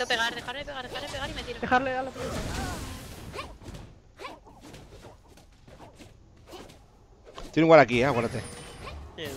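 Spell effects whoosh and clash in a fast-paced game battle.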